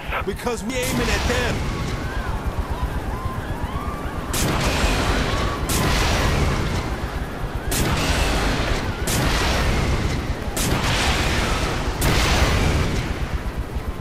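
Rockets launch with loud whooshing bursts.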